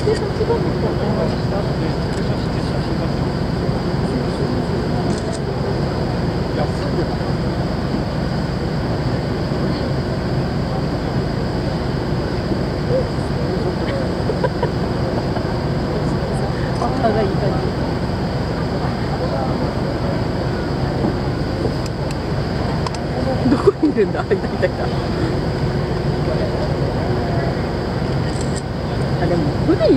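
A docked ship's engine hums steadily.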